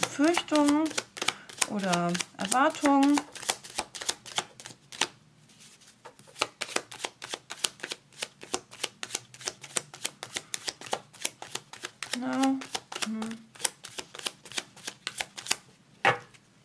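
Playing cards riffle and flick rapidly as they are shuffled.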